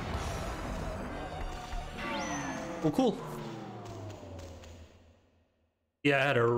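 Game sound effects whoosh and crash with a fading ring.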